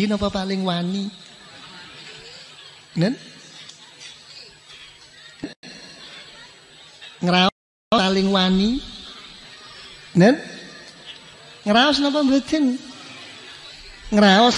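An elderly man chants in long drawn-out phrases.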